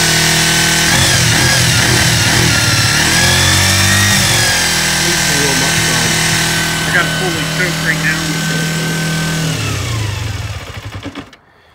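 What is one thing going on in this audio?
A motorcycle engine revs up and down a few times.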